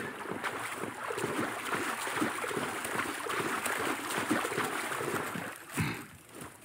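Water splashes and churns as a boat moves through it.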